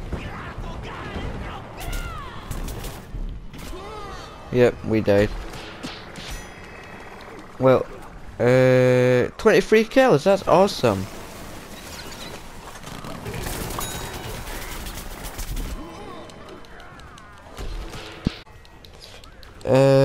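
Cartoonish game shots pop and thud repeatedly.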